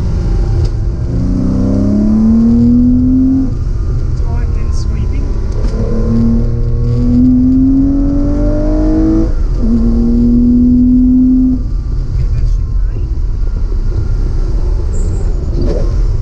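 A car engine revs up and down loudly as the car accelerates through the gears.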